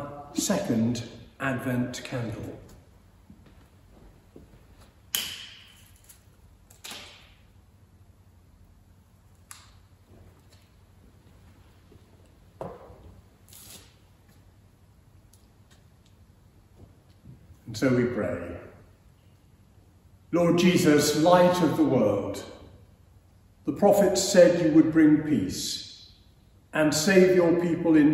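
An elderly man reads aloud calmly, in a room with a slight echo.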